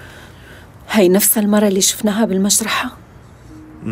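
A woman speaks tensely close by.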